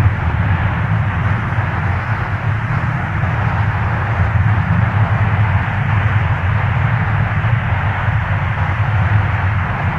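A three-engine jet airliner taxis with its engines droning.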